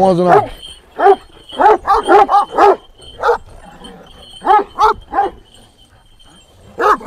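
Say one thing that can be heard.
A large dog barks loudly and deeply, again and again, close by.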